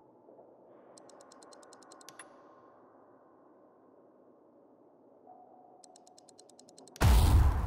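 A game menu makes rapid ticking clicks.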